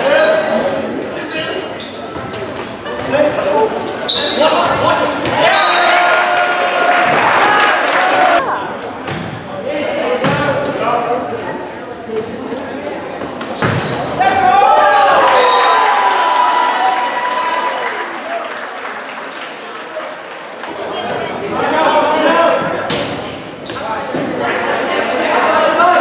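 A volleyball is struck with sharp slaps during a rally.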